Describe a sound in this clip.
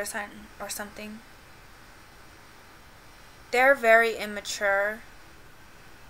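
A woman speaks calmly and close by, in short bursts.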